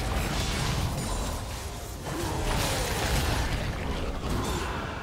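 Spell effects whoosh and crackle in a fast game battle.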